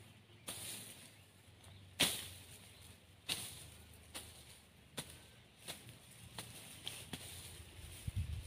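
Dry grass rustles and crackles as it is pulled by hand.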